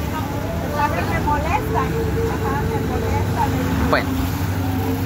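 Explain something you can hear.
Two women talk calmly nearby.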